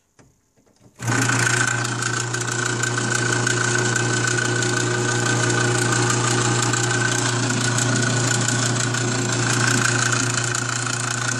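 An electric motor hums steadily with a whirring drive.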